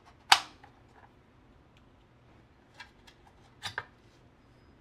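Plastic parts click and snap as they are pried apart.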